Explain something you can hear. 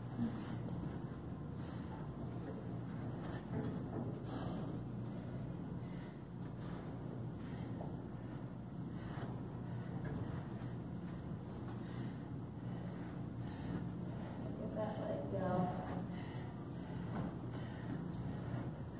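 Footsteps tread softly on carpeted stairs.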